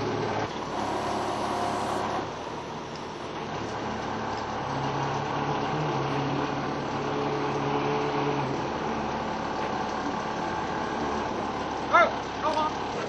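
A crane engine hums steadily nearby.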